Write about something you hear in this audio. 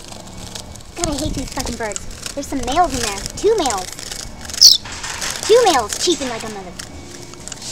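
Young birds in a cage call with short, wavering squeaks.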